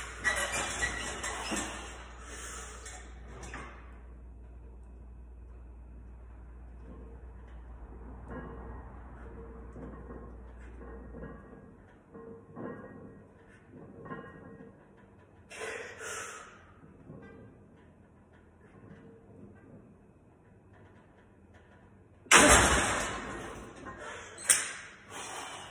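A man strains and grunts while pressing a heavy weight.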